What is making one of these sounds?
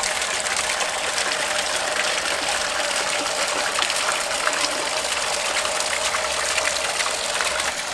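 Water splashes steadily into a pond.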